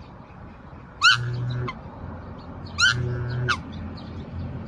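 A swan gives loud, high bugling calls twice.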